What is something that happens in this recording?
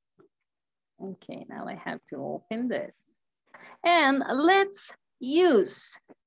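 A second woman speaks animatedly through an online call.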